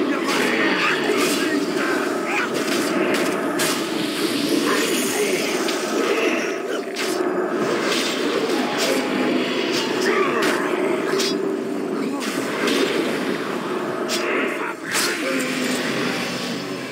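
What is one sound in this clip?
Magic spells crackle and burst in rapid bursts.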